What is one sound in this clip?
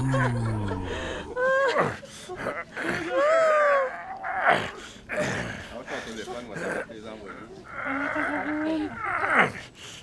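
A man talks and exclaims with animation close by.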